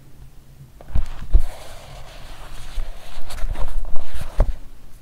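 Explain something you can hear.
Paper pages rustle and turn.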